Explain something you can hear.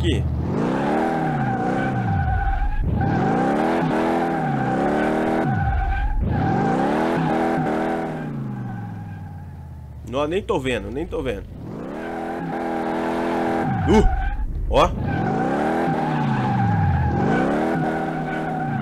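Tyres squeal steadily as a car drifts.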